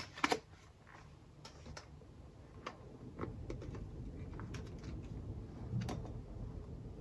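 Paper crinkles and rustles as a packet is handled and torn open.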